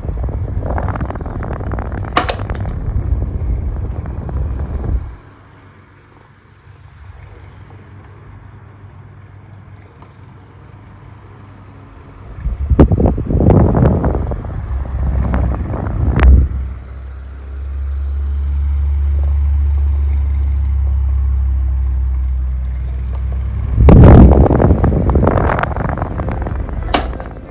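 An electric fan whirs and hums steadily.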